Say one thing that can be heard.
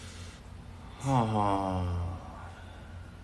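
A young man's voice slides down in a drawn-out exclamation, close to a microphone.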